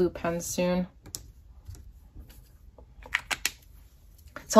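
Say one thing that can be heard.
A sticker peels off its backing with a faint crackle.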